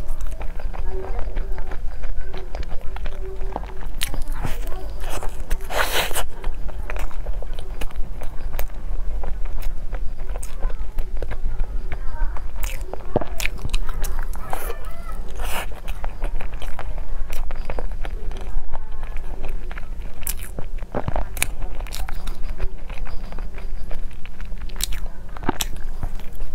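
A young woman chews food noisily and close to a microphone.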